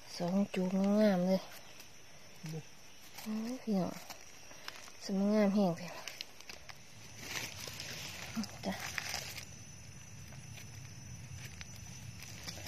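A knife scrapes soil off a mushroom stem.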